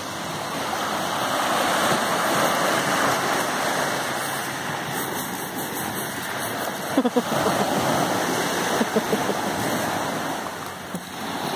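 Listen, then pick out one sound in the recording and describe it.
Small waves break and wash over a pebble beach.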